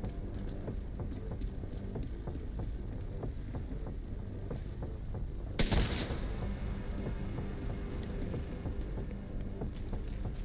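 Footsteps clank steadily on metal stairs and walkways.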